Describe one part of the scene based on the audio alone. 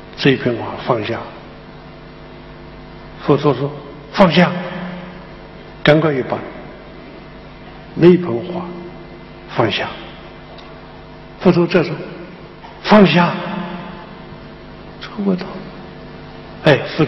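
An elderly man speaks slowly and expressively into a microphone, with a slight echo in a large hall.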